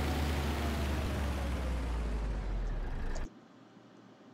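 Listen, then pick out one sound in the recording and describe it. A truck engine rumbles loudly and steadily, then cuts off.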